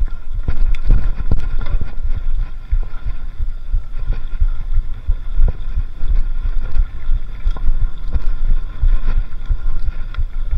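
Wind rumbles and buffets loudly against the microphone.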